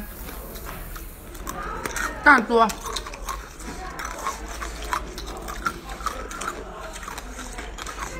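Hard candy crunches between teeth.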